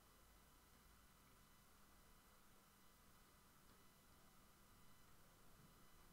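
Cards are slid and tapped onto a table.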